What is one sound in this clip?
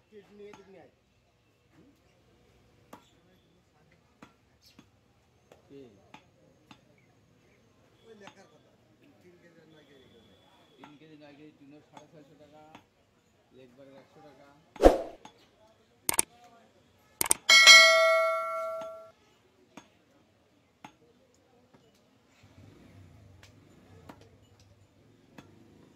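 A cleaver chops meat on a wooden block with dull thuds.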